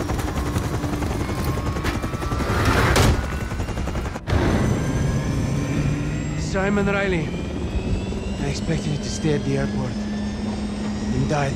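A helicopter engine and rotor drone loudly and steadily.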